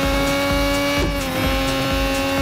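A racing car engine briefly dips in pitch as it shifts gear.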